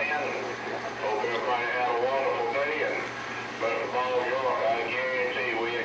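A man's voice talks through a crackly radio loudspeaker.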